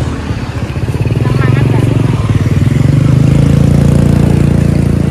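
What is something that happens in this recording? A motor scooter drives past with a rising engine hum.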